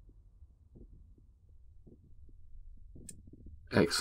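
A stone tool strikes a hard object with a sharp knock.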